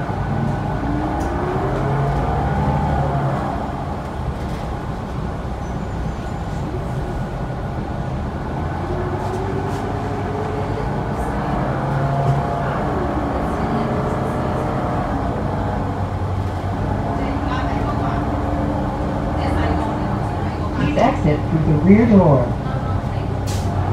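A bus interior rattles and creaks over the road.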